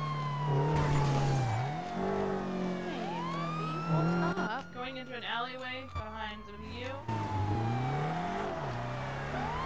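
A car engine revs and roars as the car speeds along.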